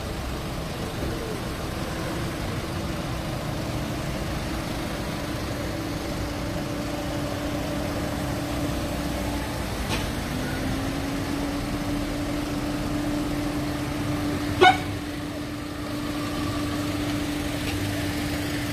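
Tyres hiss on the road.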